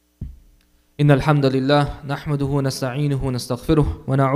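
A young man speaks steadily into a microphone through a loudspeaker.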